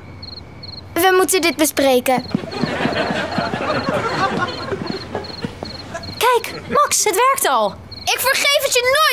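A young girl shouts with annoyance.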